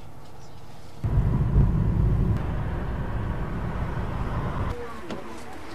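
A car engine and tyres rumble on the road.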